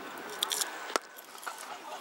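A cricket bat cracks against a leather ball.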